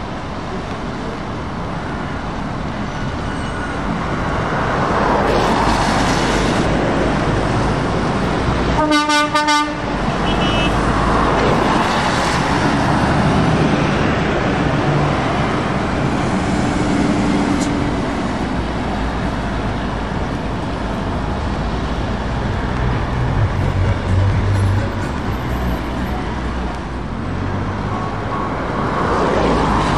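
Heavy trucks rumble past one after another.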